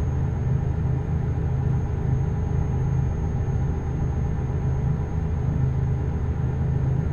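A truck engine rumbles steadily in a low drone.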